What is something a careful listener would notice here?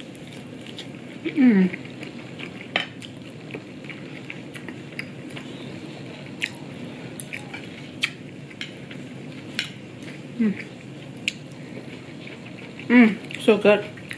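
A young woman chews and smacks her lips softly.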